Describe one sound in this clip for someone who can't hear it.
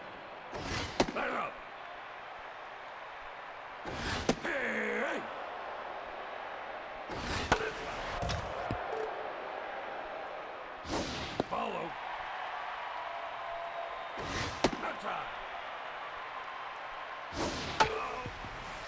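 A baseball smacks sharply into a catcher's mitt again and again.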